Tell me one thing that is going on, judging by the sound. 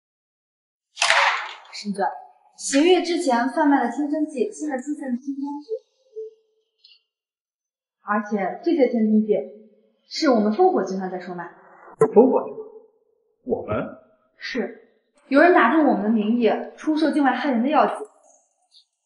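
A young woman speaks firmly, close by.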